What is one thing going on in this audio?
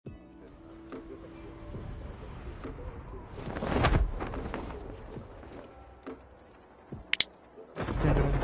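Wind rushes past during a freefall and parachute glide.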